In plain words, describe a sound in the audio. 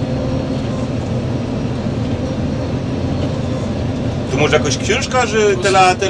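A combine harvester's header rattles as it cuts through the crop.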